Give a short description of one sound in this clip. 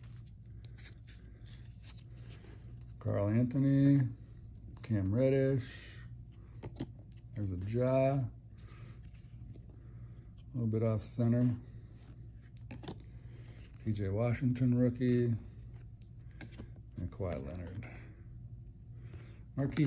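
Stiff cards slide and slap softly against each other.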